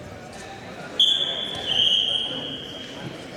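A referee blows a whistle sharply twice.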